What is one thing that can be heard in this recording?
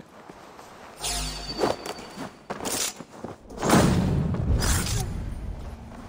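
A blade stabs into a body with a heavy, booming thud.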